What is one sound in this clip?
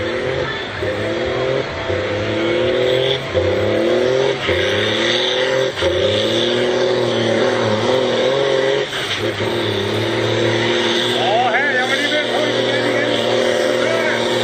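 A diesel pulling tractor roars under full load, its engine surging in pitch.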